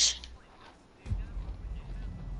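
A body lands on the ground with a heavy thud.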